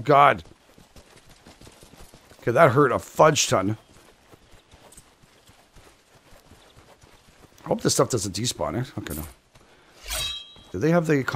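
Footsteps run quickly through tall grass and over dirt.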